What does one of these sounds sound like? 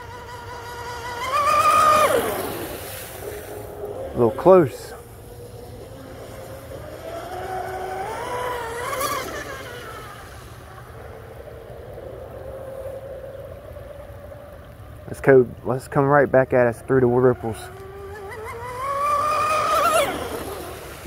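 A small model boat motor whines at a high pitch, rising and falling as the boat races past on the water.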